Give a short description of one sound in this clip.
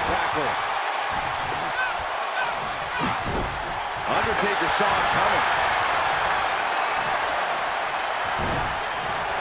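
A large crowd roars and cheers steadily, swelling louder partway through.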